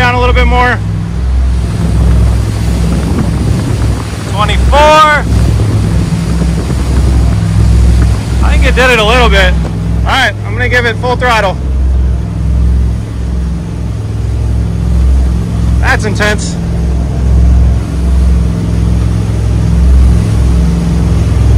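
Water churns and splashes in the boat's wake.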